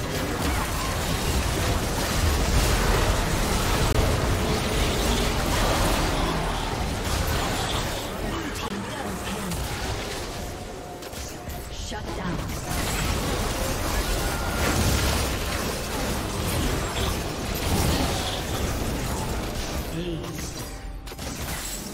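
Magic spells whoosh, blast and crackle in a fast video game battle.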